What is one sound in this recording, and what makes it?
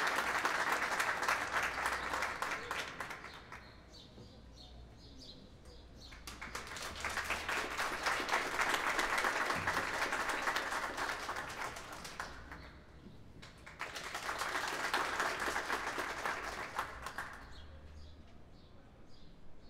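An audience claps, the applause swelling and fading in waves.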